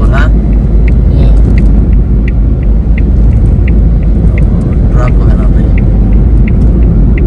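A car drives along a road with a steady low rumble, heard from inside.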